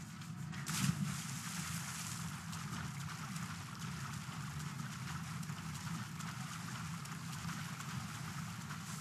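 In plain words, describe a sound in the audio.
Water sloshes and swirls as a figure swims.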